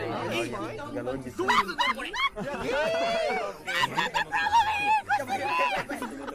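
Several young men laugh loudly over headset microphones.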